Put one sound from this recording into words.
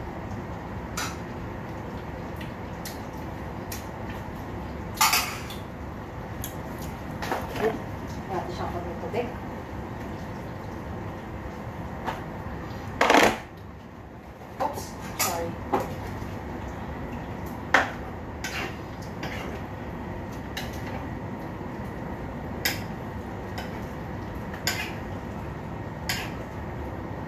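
Utensils clink and clatter against pots and pans.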